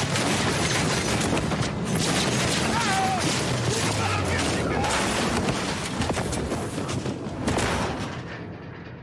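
Loud rushing wind and debris roar around a falling figure.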